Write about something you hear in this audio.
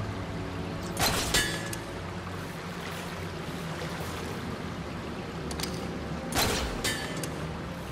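A grappling claw fires with a sharp snap.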